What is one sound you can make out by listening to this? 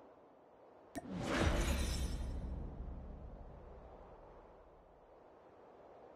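A game victory jingle swells and fades.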